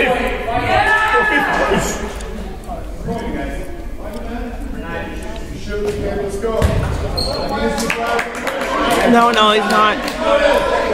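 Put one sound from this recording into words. Young people shout and talk in a large echoing hall.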